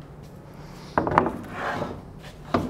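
A wooden board thumps and slides onto a table.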